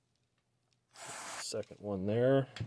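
An aerosol can sprays with a short hiss.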